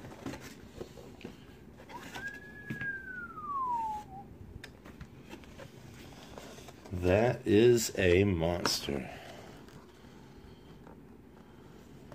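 Cardboard packaging rustles and scrapes.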